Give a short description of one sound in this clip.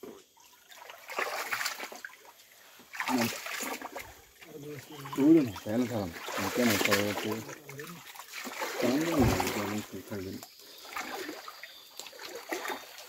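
Feet splash while wading through a shallow stream.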